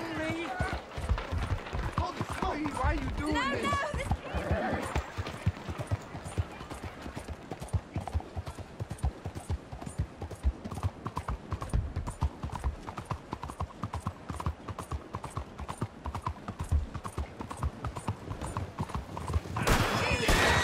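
A horse's hooves clop steadily on a hard street.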